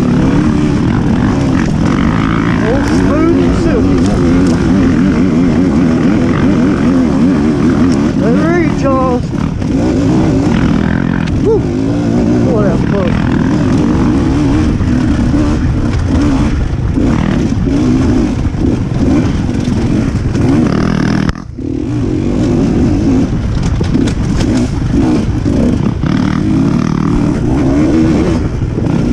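Another dirt bike engine buzzes a little way ahead.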